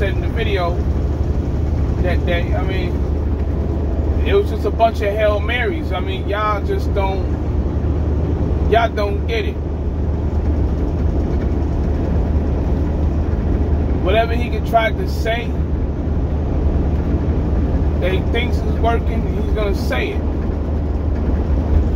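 A truck engine hums low and steady inside the cab.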